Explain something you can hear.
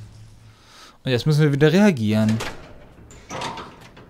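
A heavy metal door creaks slowly open.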